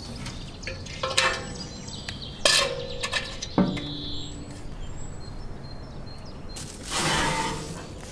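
A heavy metal lid creaks and clanks open.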